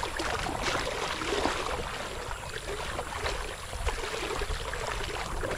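A paddle splashes and dips in the water.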